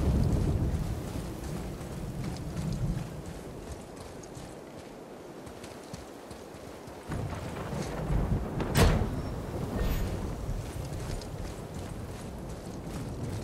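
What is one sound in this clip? Heavy footsteps crunch on a forest floor.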